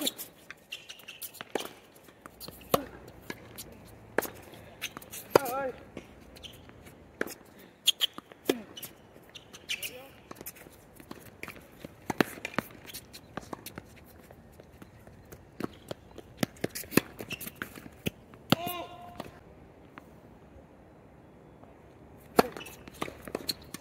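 Tennis balls are struck with sharp pops of rackets, near and far.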